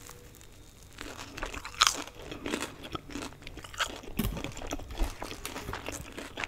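A young woman bites and chews crunchy food close to a microphone.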